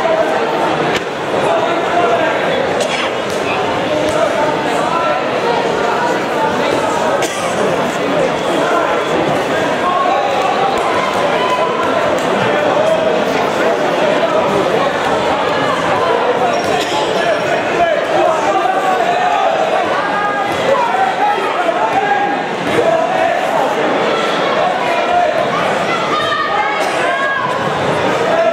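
A large crowd chatters and shouts throughout a big echoing hall.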